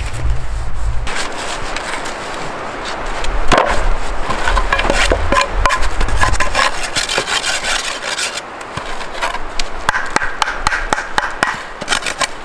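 Split wooden sticks knock and clatter together.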